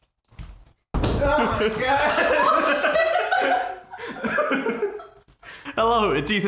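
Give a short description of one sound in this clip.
A young man laughs loudly and talks with animation.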